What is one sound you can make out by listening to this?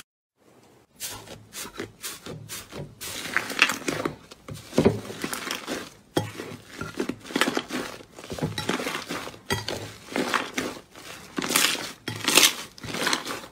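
Hands knead and stretch sticky slime, which squelches and pops.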